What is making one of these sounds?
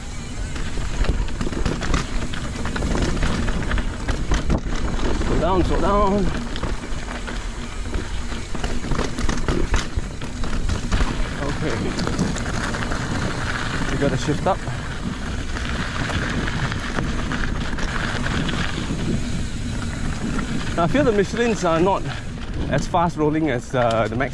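A bicycle rattles over bumps.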